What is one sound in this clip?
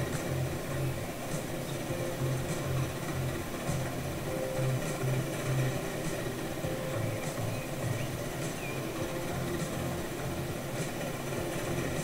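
Train wheels click over rail joints at a steady pace.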